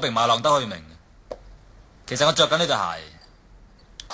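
A young man speaks smugly up close.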